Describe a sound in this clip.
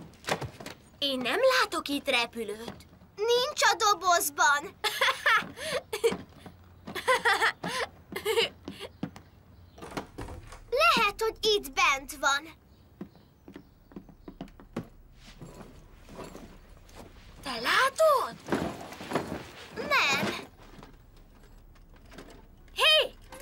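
Young boys talk with animation.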